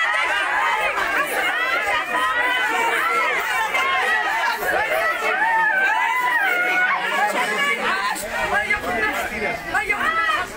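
A woman shouts angrily close by.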